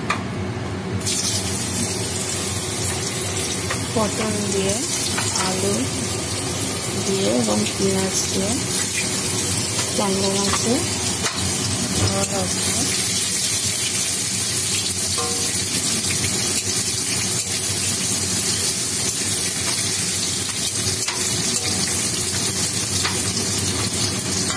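Oil sizzles loudly as vegetables fry in a hot pan.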